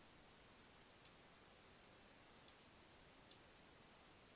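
A hedgehog chews and laps food from a dish with faint clicks.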